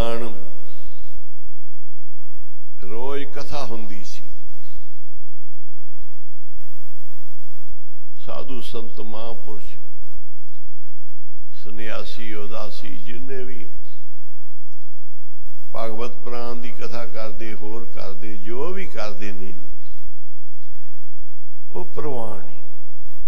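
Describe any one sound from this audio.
An elderly man sings slowly through a microphone in long phrases with pauses between them.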